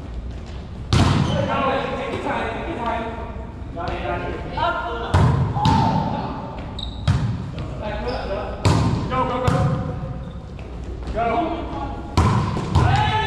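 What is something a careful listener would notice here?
A volleyball is struck with sharp smacks that echo through a large gym.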